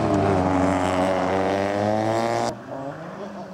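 A rally car engine roars loudly as the car races past.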